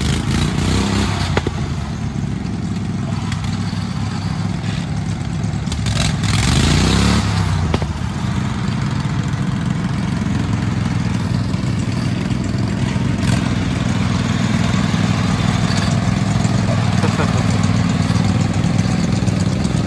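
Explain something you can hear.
A small engine chugs and revs unevenly close by.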